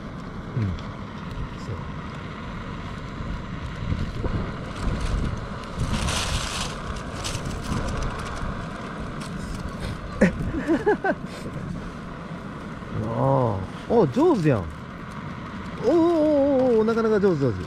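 An eggshell cracks and is peeled off in small pieces.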